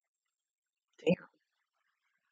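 A young woman makes a brief loud vocal sound close to a microphone.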